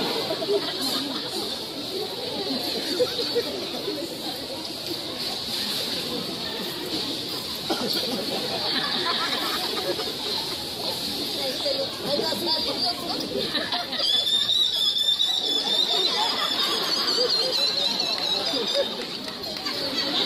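Men, women and children chatter nearby outdoors.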